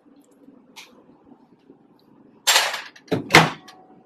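A ceramic plate clinks down onto a stovetop.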